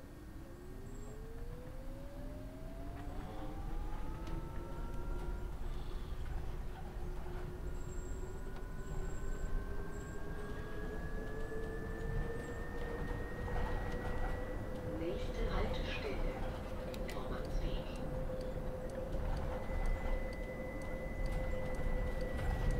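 A bus engine whines and rises in pitch as the bus speeds up.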